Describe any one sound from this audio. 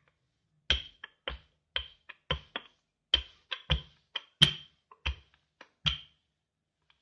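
A rolling pin thumps and knocks against a countertop.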